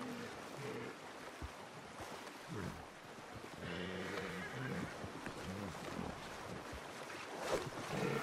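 Water splashes as an elk swims nearby.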